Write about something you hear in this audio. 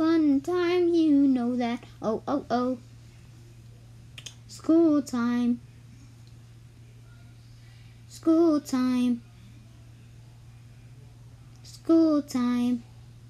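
A high-pitched cartoon voice sings short phrases with long pauses between them.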